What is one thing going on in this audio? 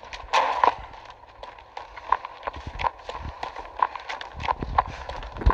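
Footsteps run on grass.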